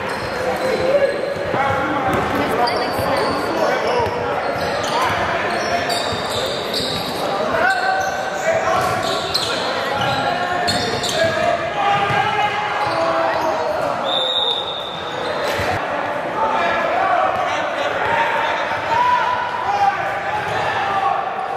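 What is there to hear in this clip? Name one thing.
Young players shout to each other across the echoing gym.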